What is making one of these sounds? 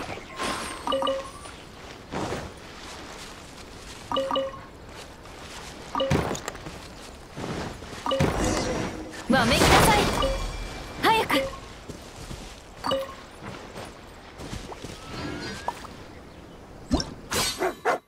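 Footsteps run over sand.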